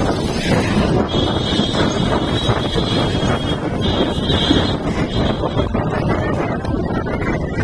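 Wind rushes loudly past while riding.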